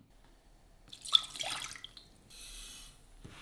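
Water pours into a metal pan.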